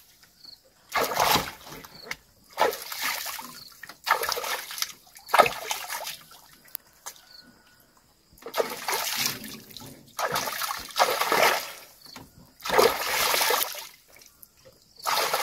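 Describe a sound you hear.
Water splashes as hands scoop and slap at its surface close by.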